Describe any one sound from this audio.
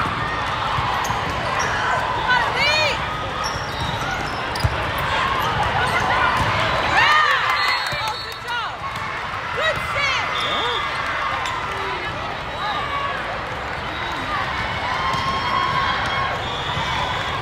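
Shoes squeak sharply on a hard court, many times.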